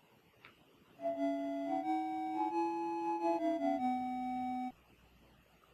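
A short melody plays in simple beeping electronic tones.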